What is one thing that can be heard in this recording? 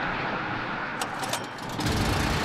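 A starter cord is pulled sharply on a small engine.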